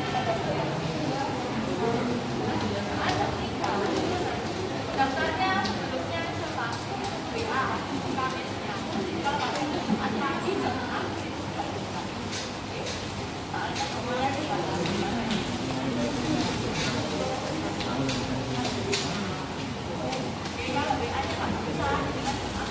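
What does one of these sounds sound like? A crowd of men and women murmur and talk nearby in an echoing hall.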